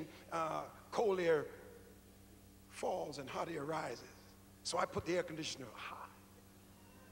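A middle-aged man preaches with animation through a microphone in a large echoing hall.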